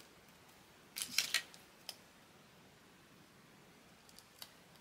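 A small cutting tool snips through thin metal.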